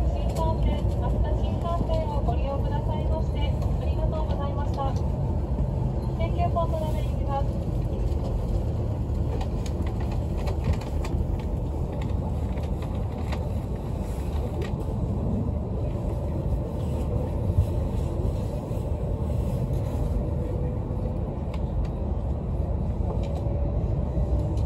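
A train rumbles steadily along an elevated track.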